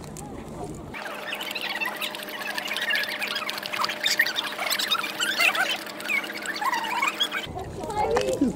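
A dog laps water noisily.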